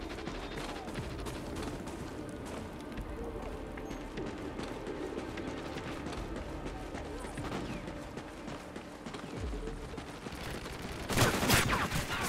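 Footsteps thud quickly on grass and stone.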